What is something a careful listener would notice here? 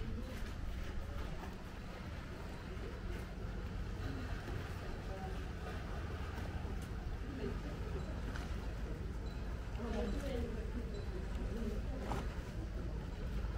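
Lake water laps gently against a stone shore.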